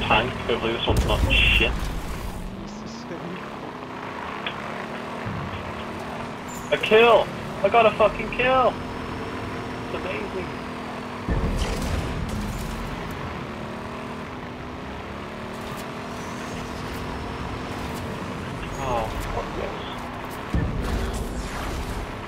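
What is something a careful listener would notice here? A game vehicle lands with a heavy thud.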